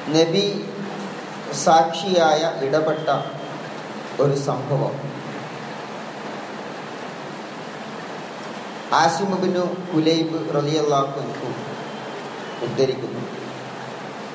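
A man speaks in a calm, measured voice, with pauses between phrases.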